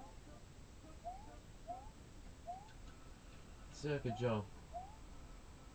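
Short rising electronic chirps from a video game play through a television speaker.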